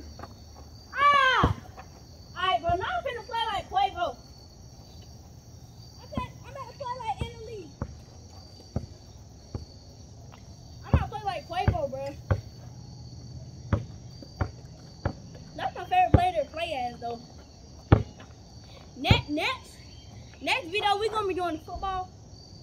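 Young boys shout and call out excitedly outdoors.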